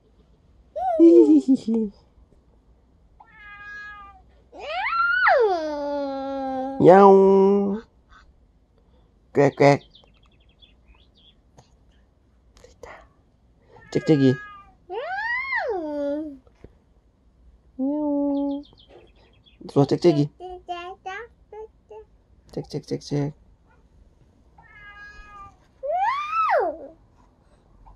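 A young boy babbles and squeals close by.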